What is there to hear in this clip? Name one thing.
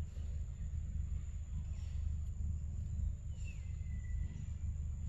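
Monkeys munch noisily on fruit.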